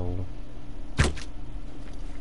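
A bowstring twangs sharply as an arrow is loosed.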